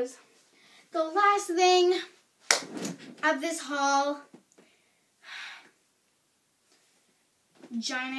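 A young girl sings loudly and close by, in short bursts.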